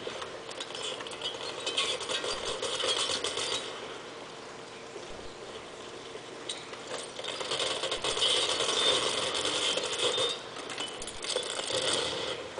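Rapid gunfire from a video game plays through speakers.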